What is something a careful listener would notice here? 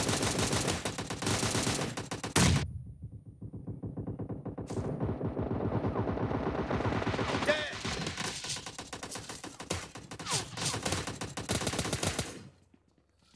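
Rapid rifle gunfire rattles in bursts.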